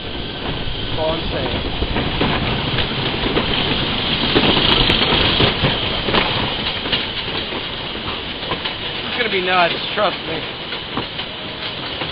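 A lift chain clanks steadily beneath a roller coaster car.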